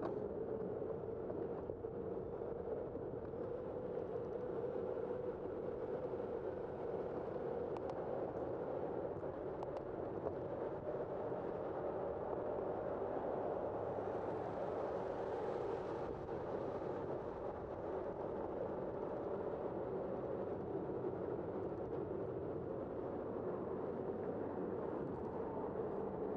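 A car drives along a city street with a steady low rumble.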